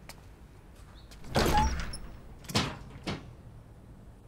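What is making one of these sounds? A window rattles and bangs as it is pushed open.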